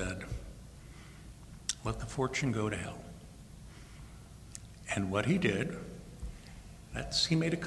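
A man speaks calmly into a microphone with pauses, heard through loudspeakers in a large room.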